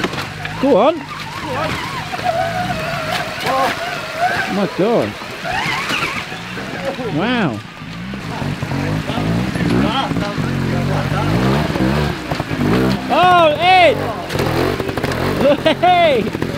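A trials motorbike revs in sharp, rising bursts.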